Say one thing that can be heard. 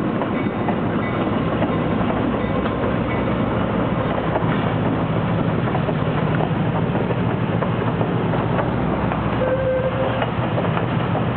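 Steel wheels clatter and squeal on rails.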